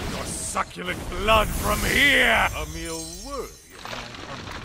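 A swirling magical chime sweeps up and down.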